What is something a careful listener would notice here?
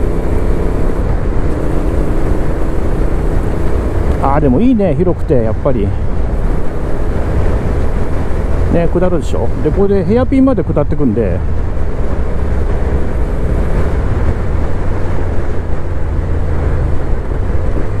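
Wind roars steadily against a rider's helmet.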